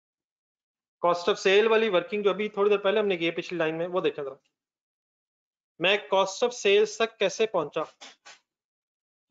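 A man speaks calmly through a microphone, explaining.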